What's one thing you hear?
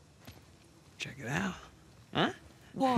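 A second young man answers with animation.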